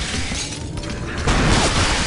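Glass shatters.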